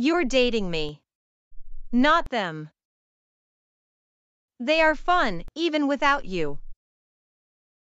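A young woman speaks sharply and angrily, close up.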